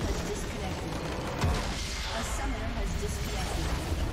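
A crystal structure shatters with a loud burst.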